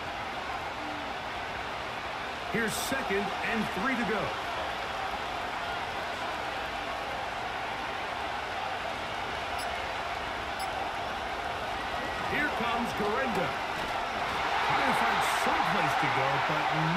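A stadium crowd roars steadily, swelling louder near the end.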